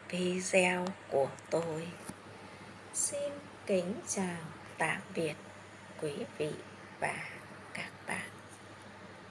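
A middle-aged woman speaks calmly and close up.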